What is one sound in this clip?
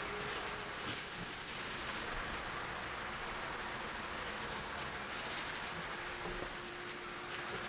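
A pastel stick rubs and scratches softly on paper.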